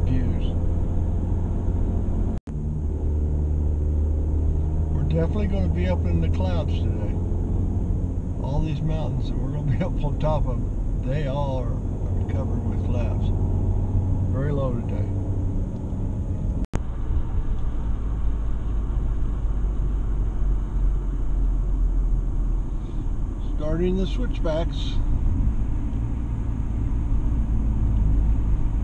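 Tyres roar steadily on a paved road.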